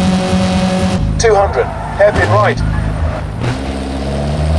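Tyres squeal sharply as a car brakes into a tight bend.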